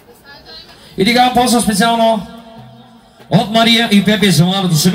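A young man sings loudly into a microphone through loudspeakers outdoors.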